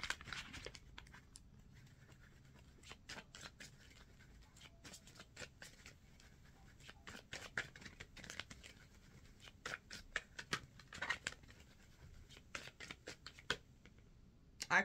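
Playing cards shuffle and tap together in a woman's hands.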